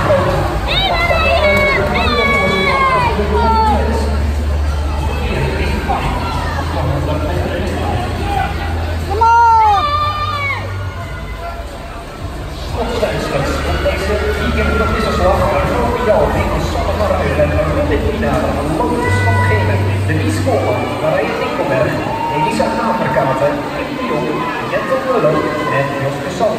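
Spectators cheer and shout in a large echoing hall.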